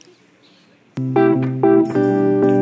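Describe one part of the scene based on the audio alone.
An electric guitar plays a chord.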